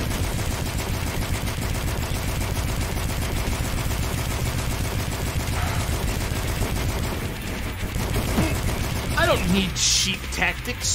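A rapid-fire gun shoots in a fast, steady stream.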